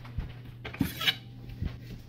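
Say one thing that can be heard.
A knife slides out of a wooden block.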